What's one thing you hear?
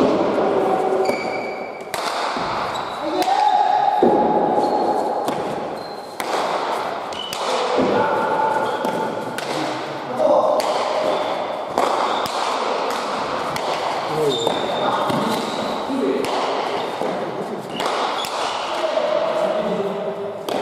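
Players' shoes squeak on the floor.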